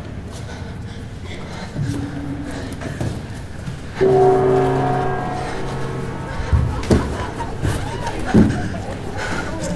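A hand slaps against a hard wall.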